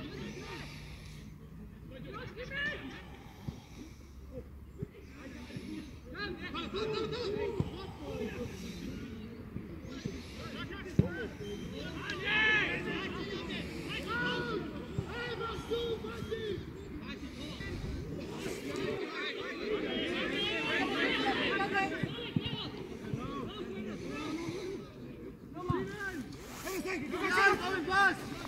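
Footballers shout to each other across an open pitch outdoors.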